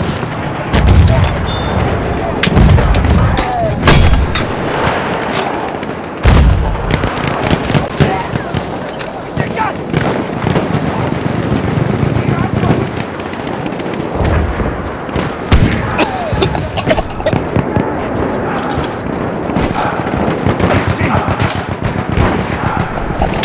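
Gunfire crackles in the distance throughout.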